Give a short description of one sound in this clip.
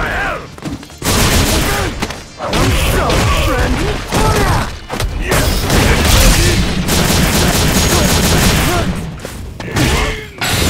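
Heavy punches and kicks land again and again with loud smacks and thuds.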